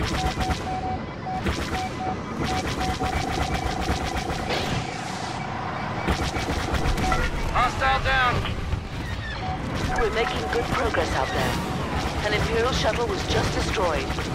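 A starfighter engine roars steadily.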